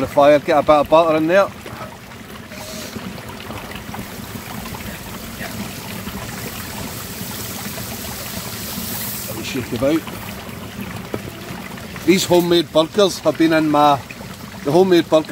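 A campfire crackles under a frying pan.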